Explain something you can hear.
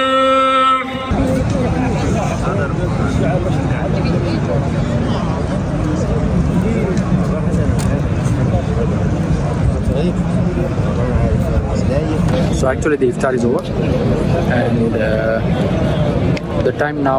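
Many people murmur and talk in a large open space.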